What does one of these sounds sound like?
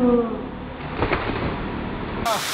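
A person splashes into water from a jump.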